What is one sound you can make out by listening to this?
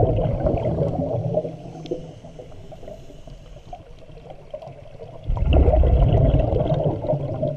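A diver's breath bubbles out underwater in deep, rumbling bursts.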